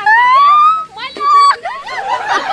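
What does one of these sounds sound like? A young woman screams loudly and shrilly.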